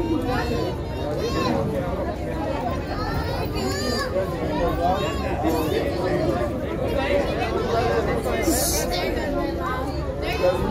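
A crowd of men and women chatter loudly outdoors.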